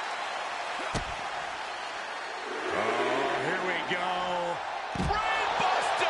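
A body slams heavily onto the floor.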